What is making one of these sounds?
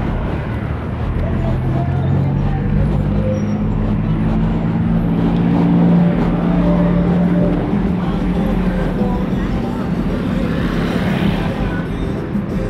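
A heavy vehicle's engine drones steadily nearby.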